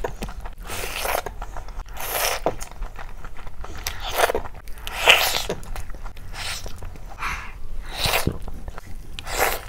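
A woman chews food wetly and noisily, very close to a microphone.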